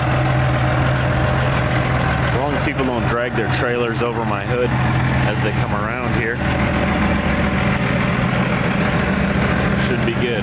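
A truck engine idles with a steady low rumble nearby.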